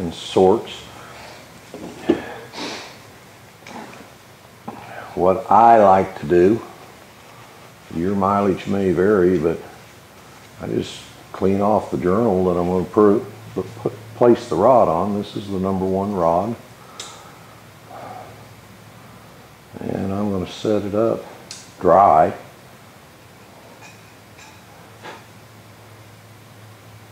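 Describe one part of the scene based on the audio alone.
Small metal parts click and clink in a man's hands.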